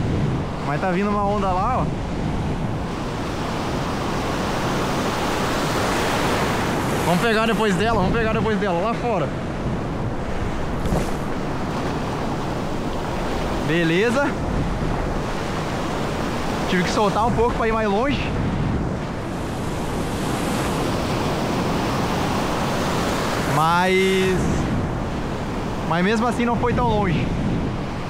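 Surf waves wash and roar all around, close by.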